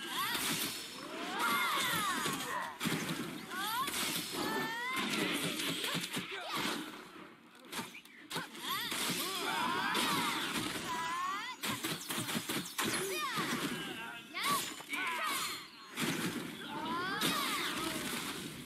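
Weapons clash and magic blasts burst in a fast fight.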